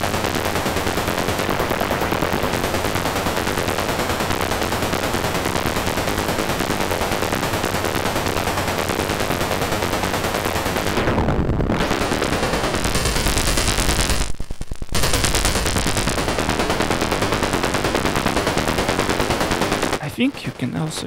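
A modular synthesizer plays a buzzing, noisy drone that shifts as knobs are turned.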